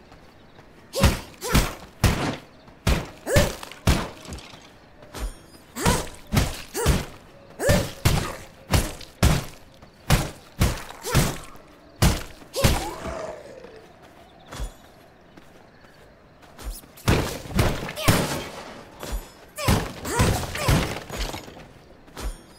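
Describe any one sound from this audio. Blade strikes and hits land in quick, repeated bursts.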